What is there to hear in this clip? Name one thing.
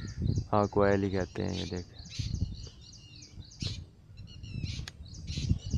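Birds chirp and whistle in the trees outdoors.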